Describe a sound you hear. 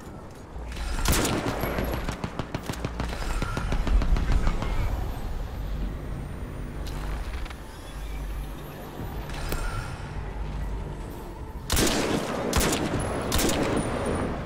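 Sniper rifle shots ring out loudly, one at a time.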